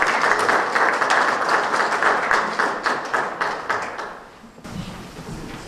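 An audience applauds with rapid clapping.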